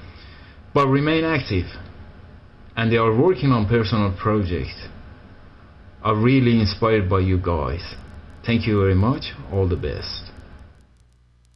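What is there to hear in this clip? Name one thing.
A man talks calmly over an online call, heard through loudspeakers.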